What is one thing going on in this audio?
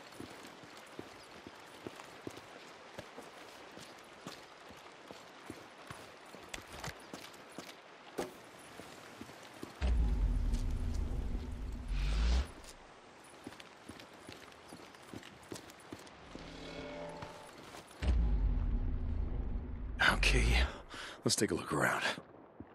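Footsteps run and crunch on gravel.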